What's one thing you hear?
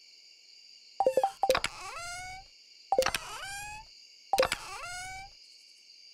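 A game plays a short buzzing alert sound three times.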